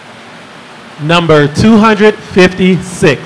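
A man speaks into a microphone over a loudspeaker, calmly announcing in a large room.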